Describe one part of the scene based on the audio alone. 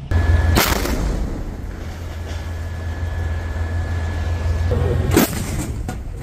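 A tank engine rumbles deeply and steadily.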